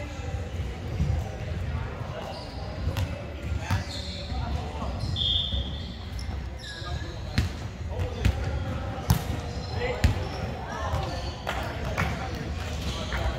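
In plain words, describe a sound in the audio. Young people call out to each other across the court.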